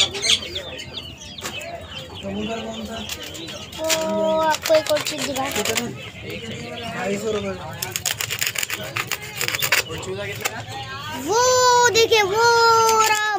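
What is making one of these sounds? Birds chirp and coo from cages.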